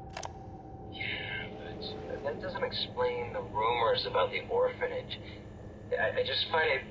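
A young man speaks calmly and quietly into a phone.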